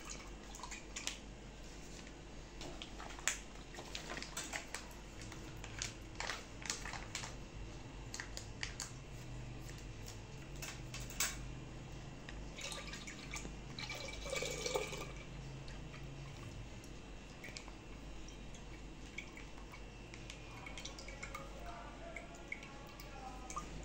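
Powder pours softly from a packet into a clay pot.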